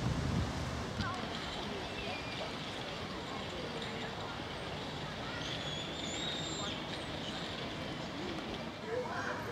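A fountain sprays and splashes steadily in the distance.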